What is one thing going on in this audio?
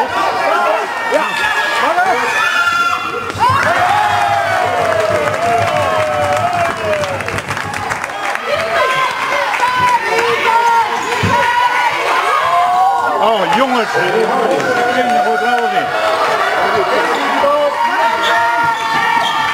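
Spectators shout and cheer in a large echoing hall.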